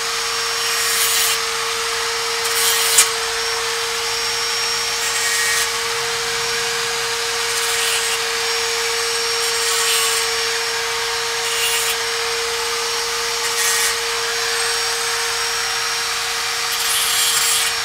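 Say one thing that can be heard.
A hand tool scrapes and clicks against metal in short, repeated bursts.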